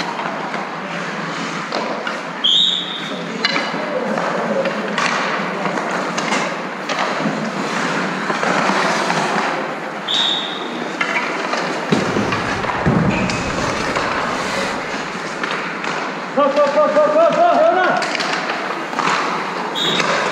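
Hockey sticks clack on the ice and puck.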